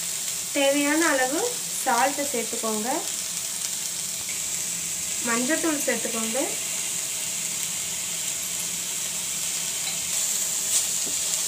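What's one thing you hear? A wooden spatula stirs and scrapes vegetables in a pan.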